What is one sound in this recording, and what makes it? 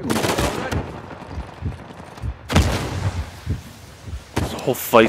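Gunshots bang loudly with a short ringing echo.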